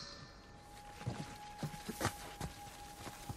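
Footsteps crunch over leafy ground.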